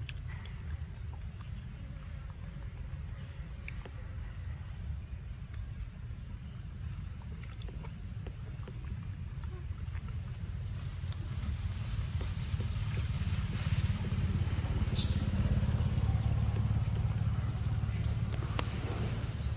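A monkey chews and munches on fruit up close.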